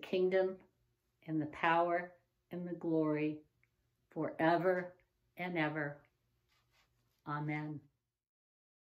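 An older woman speaks slowly and calmly in short phrases, close to a microphone.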